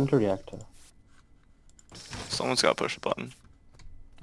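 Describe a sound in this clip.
Game switches click as they are flipped.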